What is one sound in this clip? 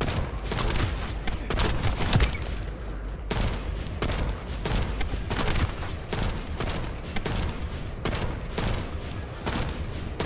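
Rifle shots fire in quick, repeated bursts.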